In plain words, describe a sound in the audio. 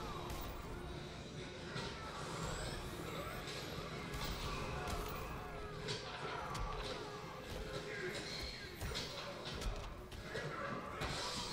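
Punches and kicks land with sharp thuds in a fighting game.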